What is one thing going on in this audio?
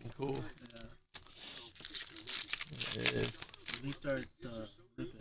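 A foil card wrapper crinkles and tears open.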